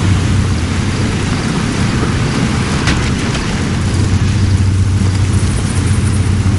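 A vehicle engine rumbles steadily while driving over rough ground.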